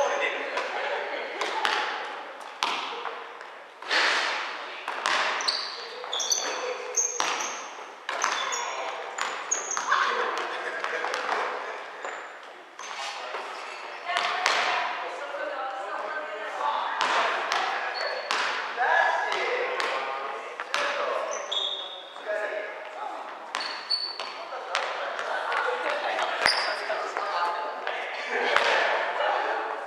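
Sneakers squeak on the floor.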